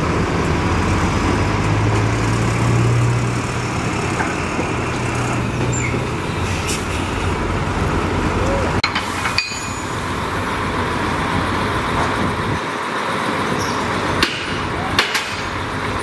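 Rocks scrape and clatter under a bulldozer blade.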